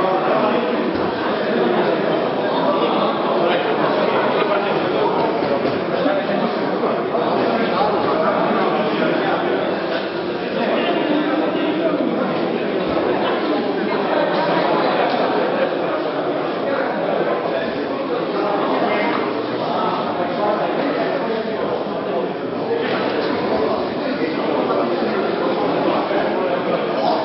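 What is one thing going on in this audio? Many people talk at once in a large echoing hall.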